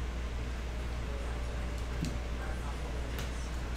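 Trading cards rustle and click as they are shuffled by hand.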